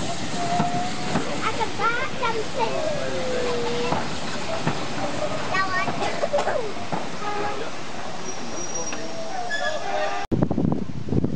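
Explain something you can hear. Train carriages roll past with a clattering rumble.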